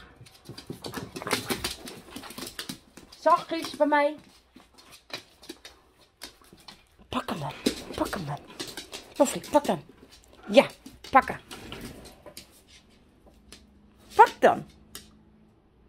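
Dogs growl and yelp playfully close by.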